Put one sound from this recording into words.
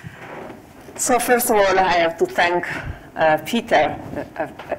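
A woman speaks warmly into a microphone.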